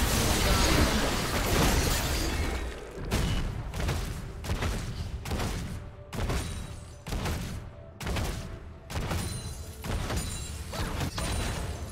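Sound effects of a video game fight play in bursts of impacts and spells.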